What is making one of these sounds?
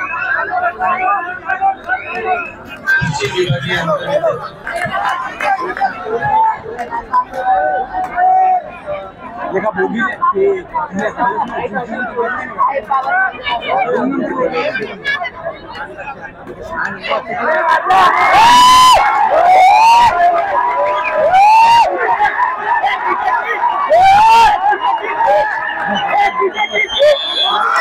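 A large crowd chatters and cheers loudly.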